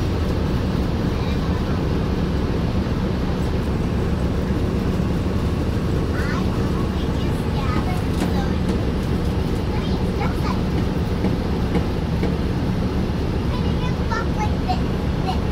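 A vehicle engine rumbles steadily from inside, moving slowly.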